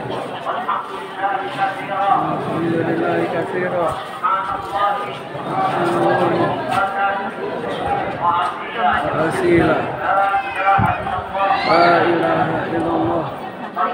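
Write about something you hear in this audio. A crowd of men and women chants prayers loudly together in an echoing hall.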